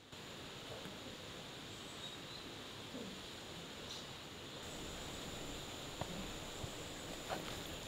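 Cloth rustles as it is folded.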